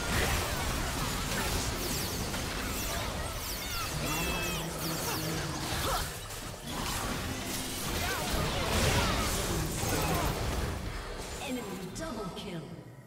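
Video game spell effects whoosh and clash.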